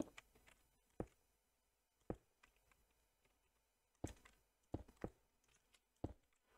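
Blocks are placed with short soft clicks in a video game.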